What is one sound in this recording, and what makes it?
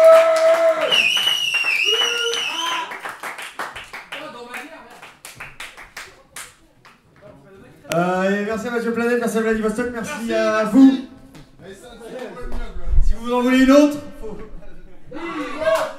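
A young man sings close into a microphone.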